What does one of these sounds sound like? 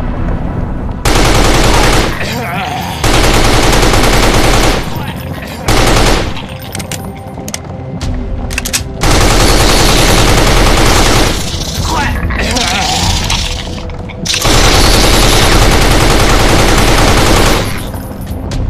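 An automatic rifle fires loud rapid bursts.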